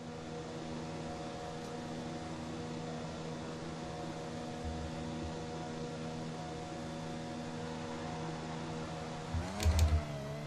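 A racing car engine hums steadily at an even low pitch.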